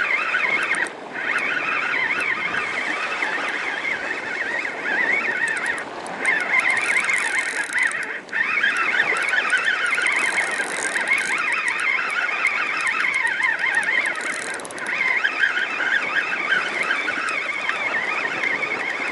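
A fishing reel whirs steadily as its handle is cranked.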